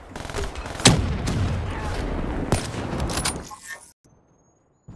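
Rifle gunfire rattles in a video game.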